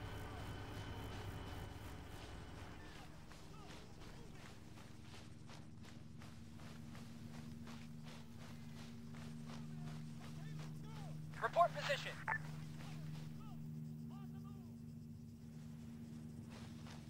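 Footsteps rustle steadily through tall dry grass.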